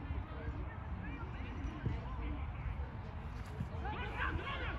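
Young men shout to each other in the distance.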